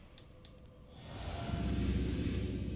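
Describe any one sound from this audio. A magical spell swells with a deep rushing roar.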